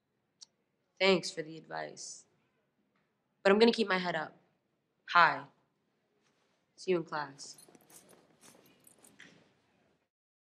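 A teenage girl answers calmly.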